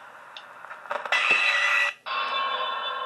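A game plays a loud crashing blast.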